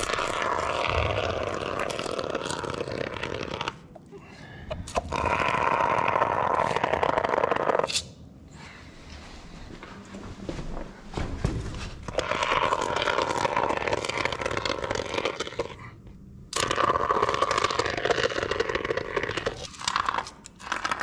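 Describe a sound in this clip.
A spray foam gun hisses loudly in strong bursts.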